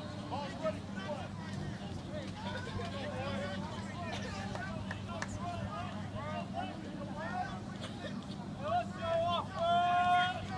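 A crowd of spectators chatters and cheers outdoors at a distance.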